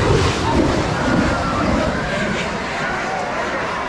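Firework sparks crackle and hiss.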